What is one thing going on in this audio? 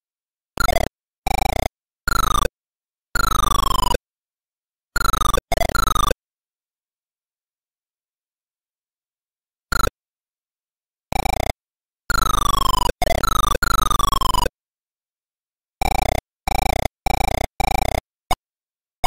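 Retro game sound effects chirp in short bursts of falling electronic tones.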